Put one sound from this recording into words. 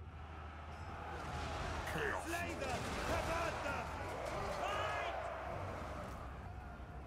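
Many fighters clash in a noisy battle.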